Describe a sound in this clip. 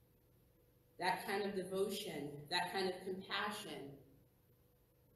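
A woman speaks calmly in a large echoing room.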